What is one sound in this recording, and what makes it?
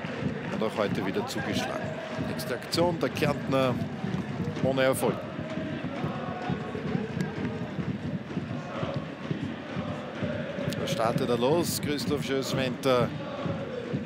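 A large crowd murmurs and chants steadily in an open stadium.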